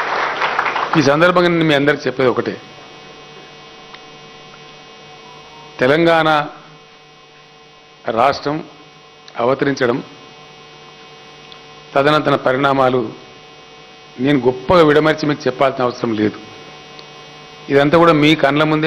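A man speaks into a microphone over a loudspeaker in short bursts with pauses.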